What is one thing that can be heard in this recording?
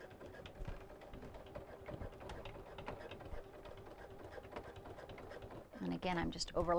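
A sewing machine hums and stitches steadily.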